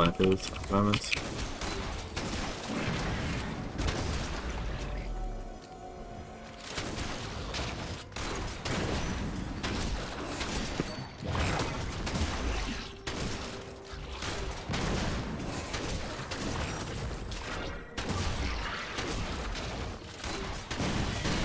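Magic blasts and weapon hits crackle and thump in a video game fight.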